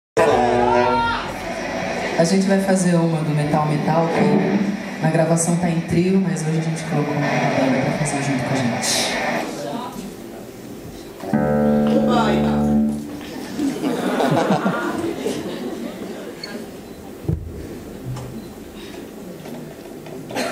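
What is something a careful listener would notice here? A band plays live on a stage.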